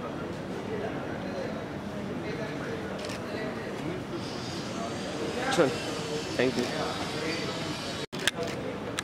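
A young man answers calmly nearby.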